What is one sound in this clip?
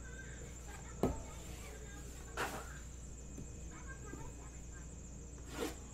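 A cardboard box knocks against a table.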